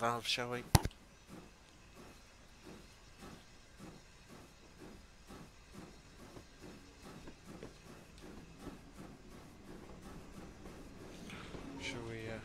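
A steam locomotive chuffs steadily as it pulls away.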